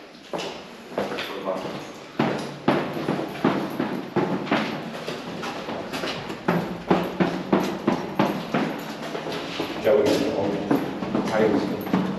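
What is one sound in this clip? Footsteps thud down hard stairs, echoing in an enclosed stairwell.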